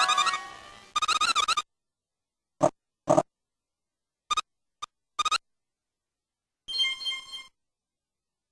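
Bright magical chimes and sparkles ring out in short bursts.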